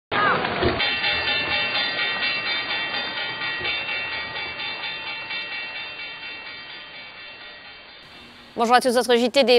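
A brass horn plays a long sustained note that slowly fades.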